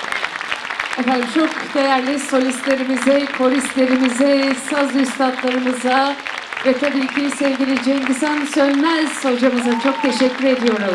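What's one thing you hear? A traditional ensemble of plucked and bowed instruments plays.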